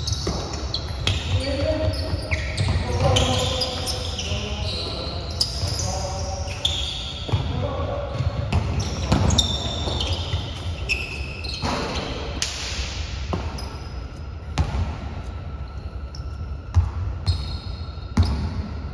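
A basketball bounces on a hard floor with echoing thuds.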